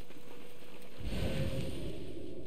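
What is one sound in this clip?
A strong gust of wind roars.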